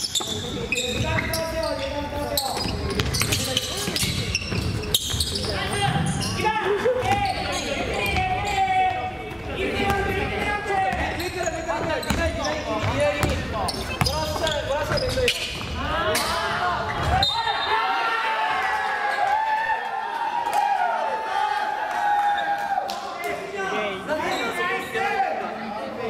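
Sneakers squeak sharply on the floor.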